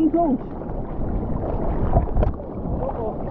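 Water splashes up close.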